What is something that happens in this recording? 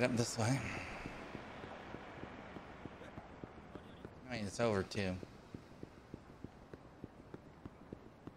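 Quick footsteps run steadily on pavement.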